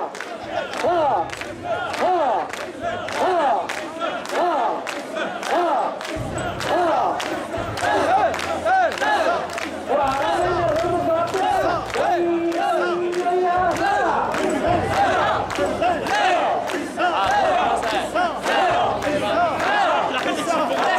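A large crowd of men chants loudly in a steady rhythm outdoors.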